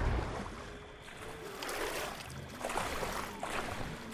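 Someone splashes while swimming through water.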